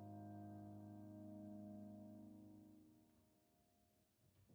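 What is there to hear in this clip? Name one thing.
A piano chord rings out and fades away.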